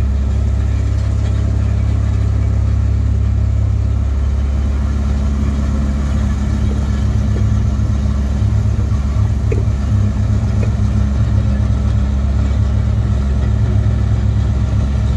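A diesel excavator engine hums and rumbles steadily up close.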